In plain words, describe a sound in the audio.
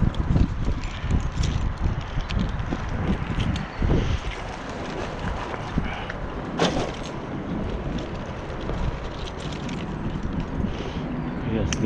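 Bicycle tyres roll and rattle over concrete.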